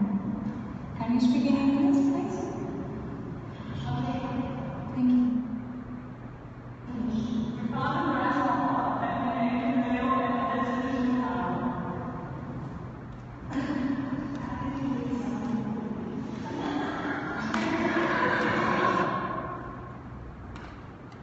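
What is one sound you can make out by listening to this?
A young woman talks with animation close by in an echoing room.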